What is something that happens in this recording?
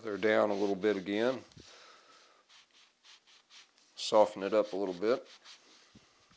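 Fingers rub and press softly on a piece of leather.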